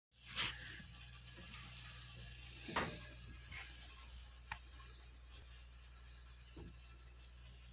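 A cat rustles a soft blanket as it shifts about.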